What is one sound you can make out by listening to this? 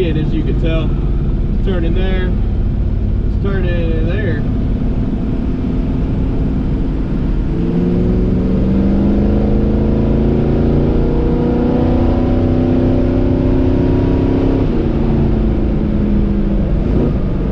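Tyres roll on a paved road with steady road noise.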